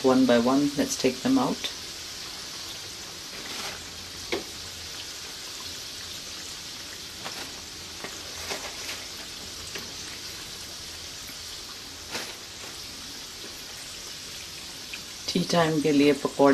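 Metal tongs click against a pan.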